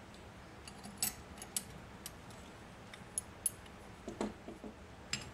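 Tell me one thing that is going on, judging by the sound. Metal parts of a hand grinder click and clink as they are fitted together.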